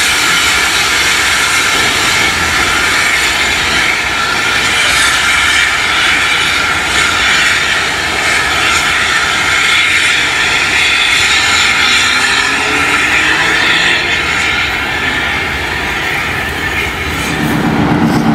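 A steam locomotive chuffs and hisses as it rolls slowly along the track.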